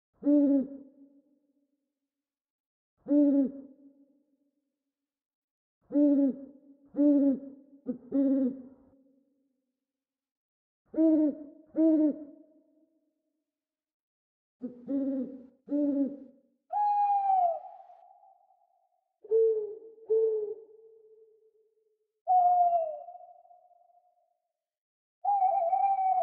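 An owl hoots in short, deep calls, then in longer screeching cries.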